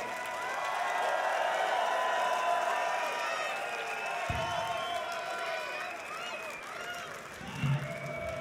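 A large crowd cheers and whistles loudly in an echoing hall.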